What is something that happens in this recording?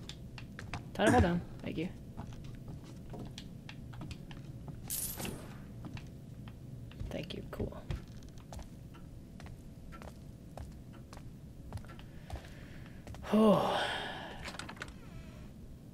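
A young man exclaims loudly close to a microphone.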